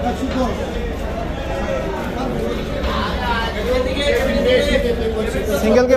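Men talk nearby in an echoing room.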